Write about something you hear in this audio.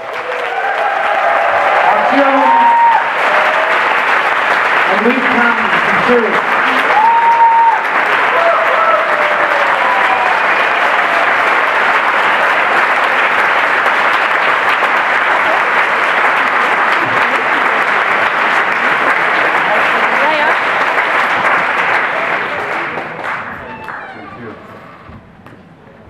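An audience applauds loudly and then the applause fades away.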